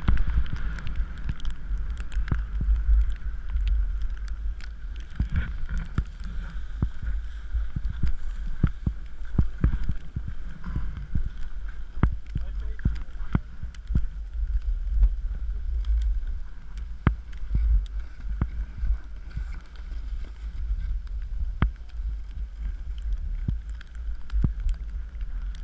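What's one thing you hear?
Skis clatter on bumps in the snow.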